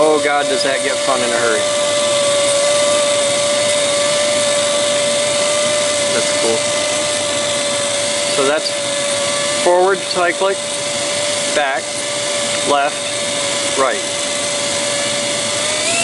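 A tiny rotor spins with a steady high whine.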